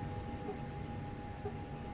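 Fingers tap on a keypad.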